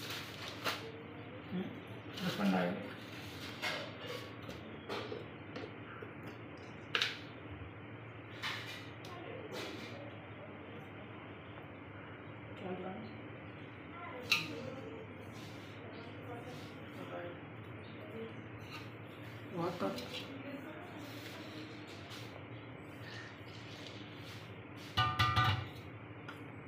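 Jars and containers clink and knock on a counter.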